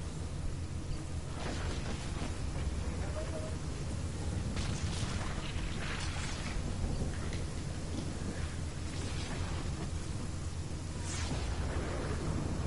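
A vehicle engine rumbles low and steady.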